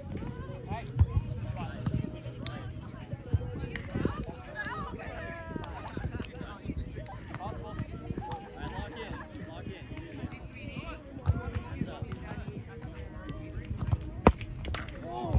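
A volleyball is smacked by hands with sharp slaps.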